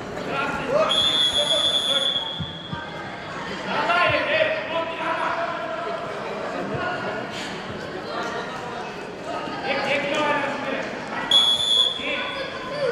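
A referee's whistle blows short, sharp blasts.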